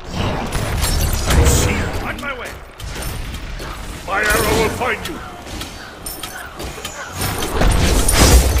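Magic spells burst and boom in a fight.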